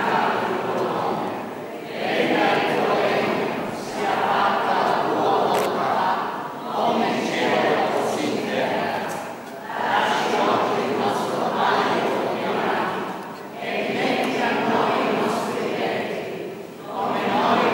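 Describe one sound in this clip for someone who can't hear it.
A crowd of men and women sings together in phrases, echoing in a large hall.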